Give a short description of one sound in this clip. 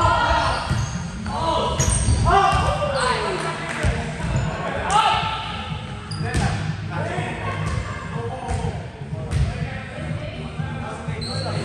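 Young men call out and shout to each other in a large echoing hall.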